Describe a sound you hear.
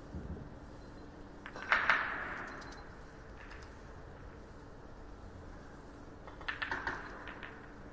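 A billiard ball rolls across the table and bumps a cushion.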